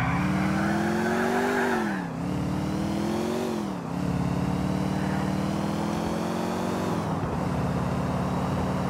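A car engine revs up and drops as the gears shift.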